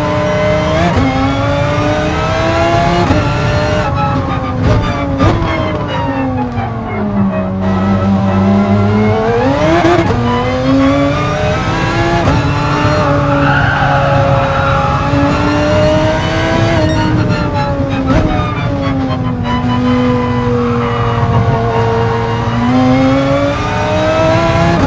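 A racing car engine roars, revving up and down through gear changes.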